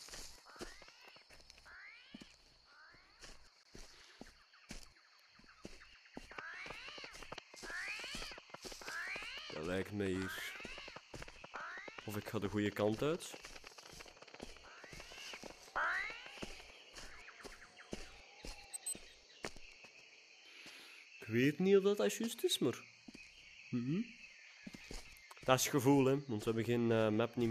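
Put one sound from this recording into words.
Footsteps crunch on soft ground at a steady walking pace.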